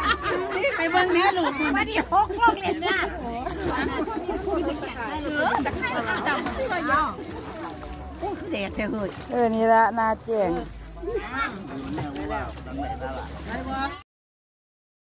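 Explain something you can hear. Several women talk and laugh together with animation, close by.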